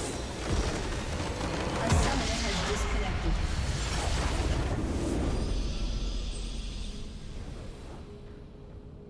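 A large explosion booms and crackles, then slowly fades.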